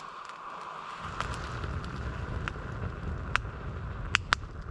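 A fire roars up as the flames catch.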